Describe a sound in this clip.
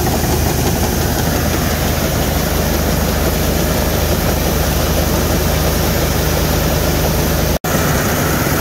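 A diesel semi truck idles.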